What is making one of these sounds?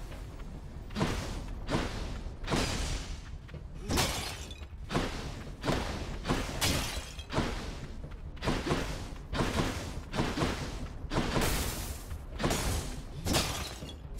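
Lightning bolts crack again and again in quick bursts.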